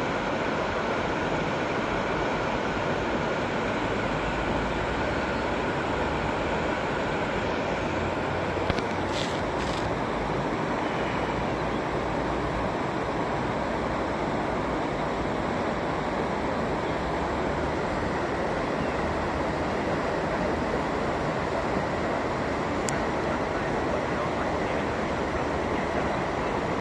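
A river rushes steadily over a weir outdoors.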